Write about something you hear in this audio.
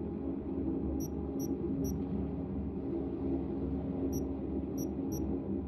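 Short, soft interface clicks tick several times.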